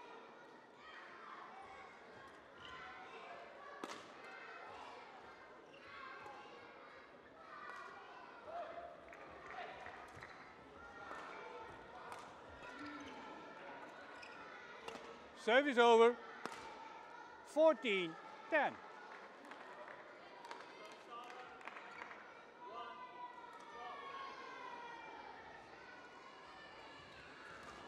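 A shuttlecock is struck sharply with a racket, back and forth.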